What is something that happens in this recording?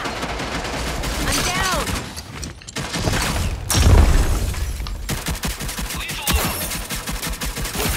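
Gunshots crack sharply, several times.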